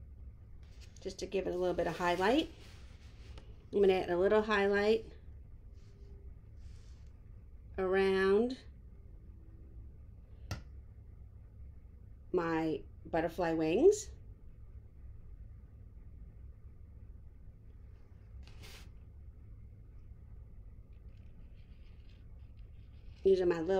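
A woman talks calmly and close to a microphone, in short bursts with pauses.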